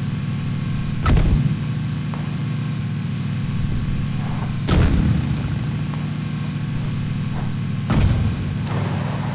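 A vehicle thuds as it jolts over bumps.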